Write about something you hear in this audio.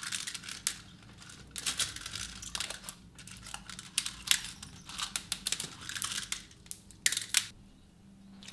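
Plastic beads rattle and click as fingers stir them.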